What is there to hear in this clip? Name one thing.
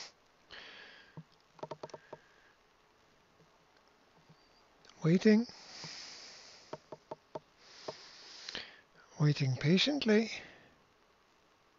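A young man speaks in short bursts, close by.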